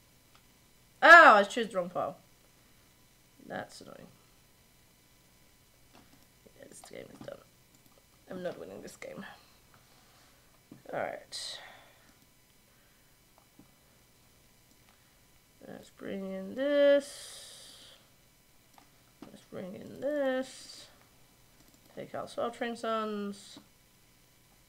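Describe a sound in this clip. A young woman speaks calmly into a microphone in short bursts with pauses.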